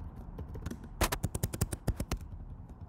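Keys clatter quickly on a keyboard close by.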